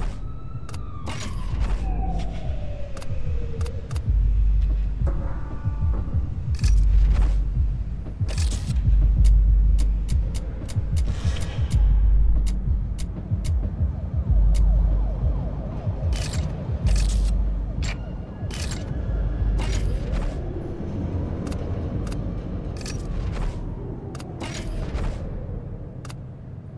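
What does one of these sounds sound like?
Game menu selections click sharply, again and again.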